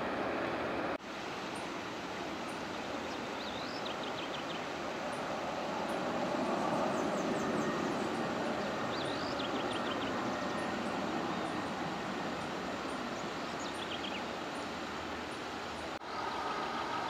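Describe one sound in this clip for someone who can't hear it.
A jet airliner's engines roar loudly as it lands, swelling and then slowly easing off.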